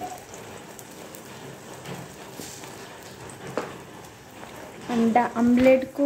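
An egg sizzles softly in a hot pan.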